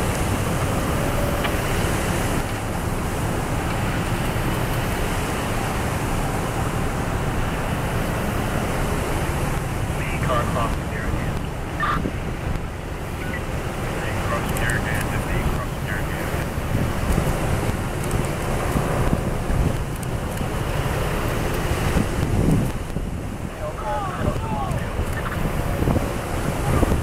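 Cars and police vehicles drive past close by, engines rumbling and tyres rolling on the road.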